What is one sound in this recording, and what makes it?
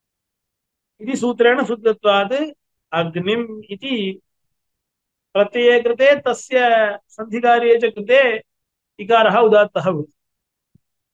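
A young man speaks calmly and clearly into a close microphone.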